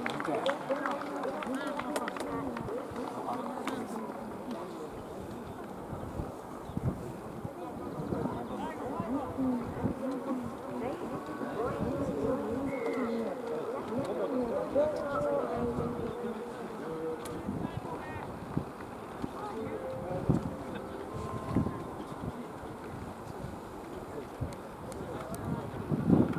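Men talk and call out outdoors, at a distance.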